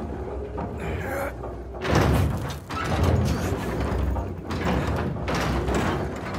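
A heavy wooden gate scrapes and thuds as it is heaved upward.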